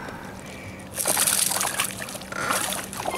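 A fish leaps from the water and splashes down.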